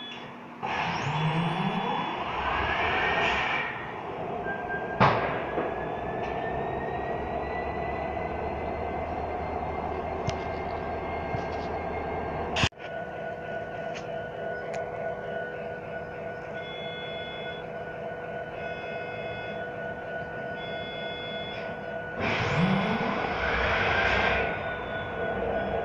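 A diesel locomotive engine rumbles and drones steadily close by.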